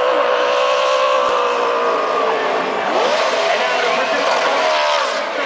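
Tyres screech as a car spins and burns out on the track.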